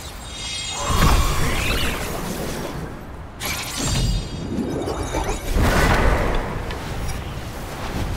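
Fiery bursts crackle and roar in a game battle.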